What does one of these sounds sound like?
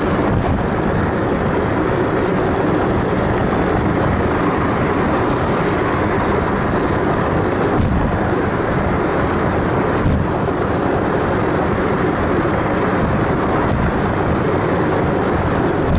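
Wind roars loudly against a moving car.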